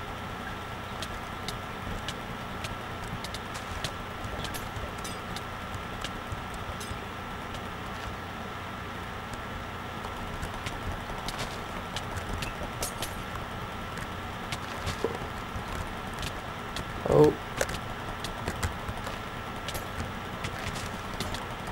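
Sword hits land with quick sharp clicks.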